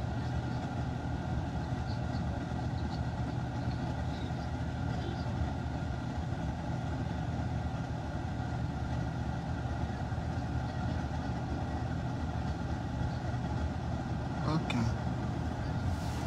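A car engine and road noise rumble steadily from inside a moving car.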